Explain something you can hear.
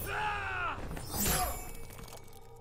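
A spinning blade whooshes through the air.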